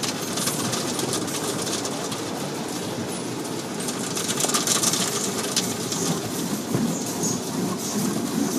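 Soapy water sprays and splashes against a car windscreen, heard from inside the car.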